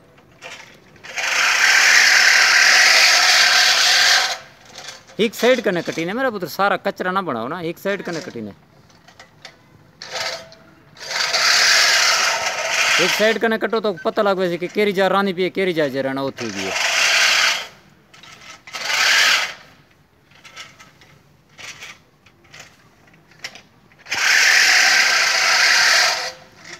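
A push mower's reel whirs as it cuts grass, in repeated bursts.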